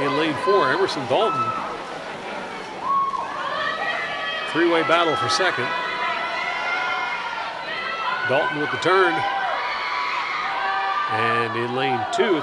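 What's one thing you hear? A crowd of young spectators cheers and shouts loudly in an echoing hall.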